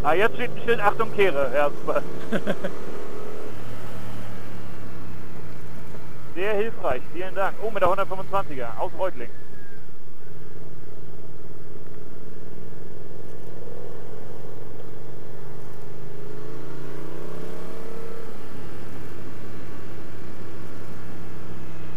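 A motorcycle engine drones steadily close by.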